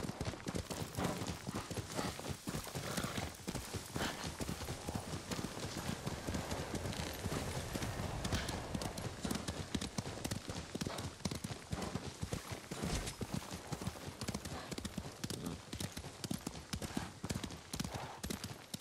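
Hooves gallop quickly over snow and dirt.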